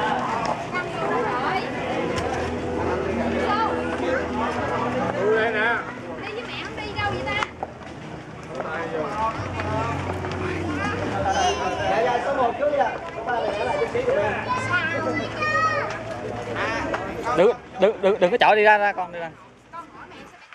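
Young boys talk and call out with animation close by.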